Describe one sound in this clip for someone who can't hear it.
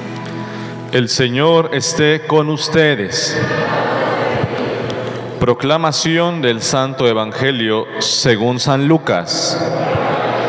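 A young man sings into a microphone, heard through loudspeakers.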